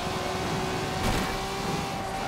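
A car scrapes against a roadside barrier.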